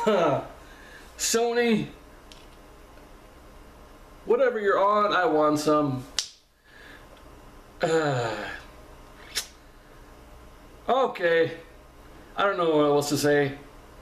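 A man speaks close to a microphone in short, animated bursts with pauses.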